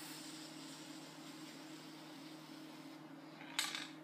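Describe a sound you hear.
A spray can hisses.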